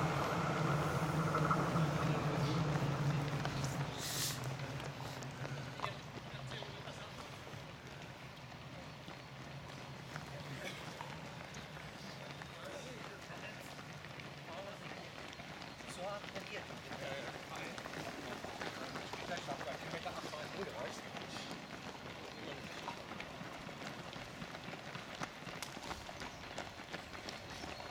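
Many runners' footsteps patter on pavement outdoors.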